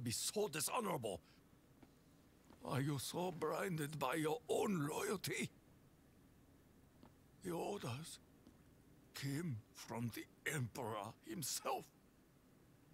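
A man speaks gruffly and intensely, close by.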